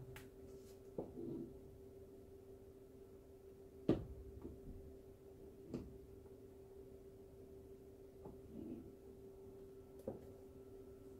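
A canvas knocks lightly against a tabletop.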